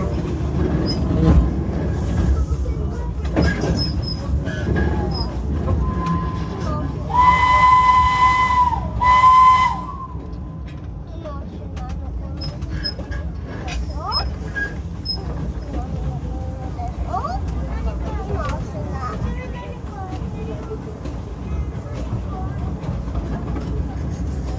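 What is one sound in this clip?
A steam locomotive chugs and rumbles steadily.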